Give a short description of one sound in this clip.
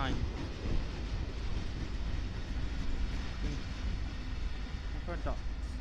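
A diesel locomotive engine roars as it passes close by.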